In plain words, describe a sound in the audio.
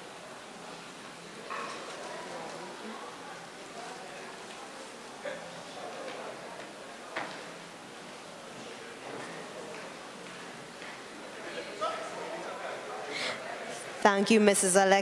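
Women chat softly in a room.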